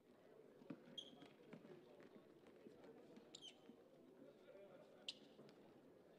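Sneakers squeak sharply on the wooden court.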